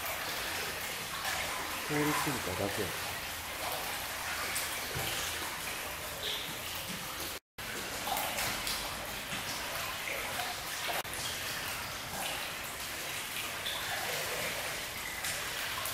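A seal pup flops and slides across a wet surface.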